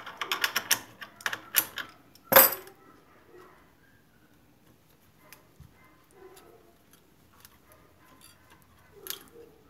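Small metal parts click and clink as a tool is adjusted by hand.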